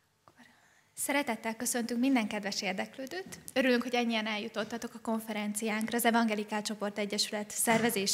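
A young woman speaks calmly into a microphone, heard through loudspeakers in a large room.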